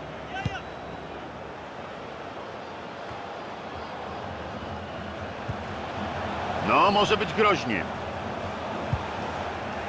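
A stadium crowd murmurs and roars without a break.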